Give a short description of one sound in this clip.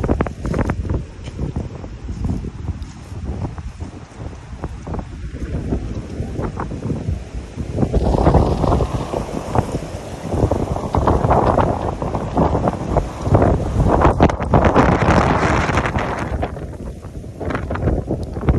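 Wind gusts and buffets outdoors, growing stronger after a while.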